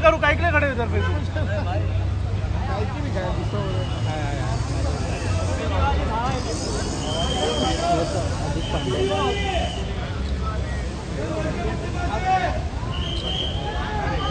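A crowd of men and women talk and call out at once nearby, outdoors.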